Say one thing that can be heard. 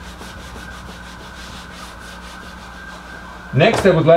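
A man wipes a whiteboard with a cloth.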